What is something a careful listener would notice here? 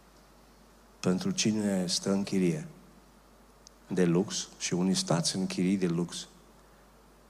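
A man speaks with emphasis into a microphone, pausing between phrases.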